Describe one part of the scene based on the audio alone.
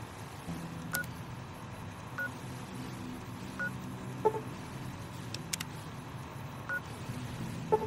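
Soft electronic beeps sound one at a time.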